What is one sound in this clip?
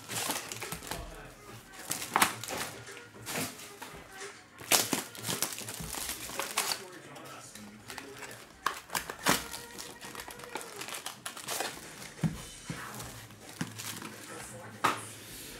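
Foil packs crinkle and rustle in hands.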